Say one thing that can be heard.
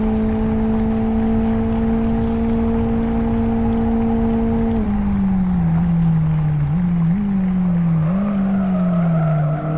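A car engine drones at a steady high pitch, then drops and rises with gear changes.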